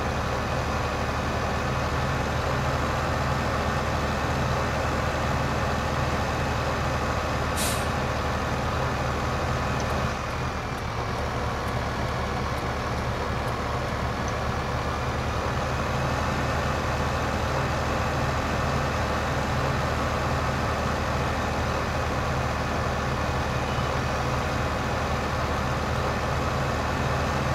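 A tractor engine rumbles steadily as it drives along a road.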